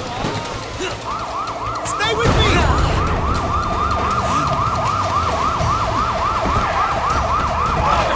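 A siren wails with a rapid rising and falling tone.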